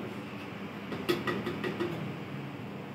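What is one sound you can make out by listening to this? A ceramic dripper clinks against a glass server.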